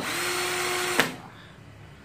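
A cordless drill whirs steadily, then stops.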